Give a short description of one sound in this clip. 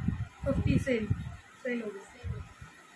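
A young woman speaks calmly close by.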